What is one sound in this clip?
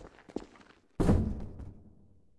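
A revolver fires a single loud shot that echoes through a large hall.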